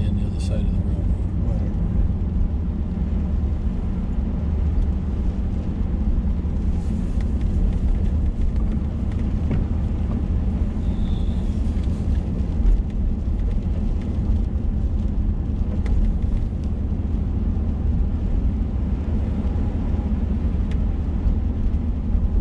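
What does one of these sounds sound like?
Raindrops patter lightly on the windshield.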